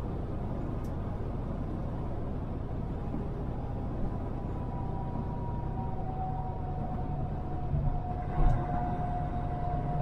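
A car drives steadily along a road, with a low engine rumble.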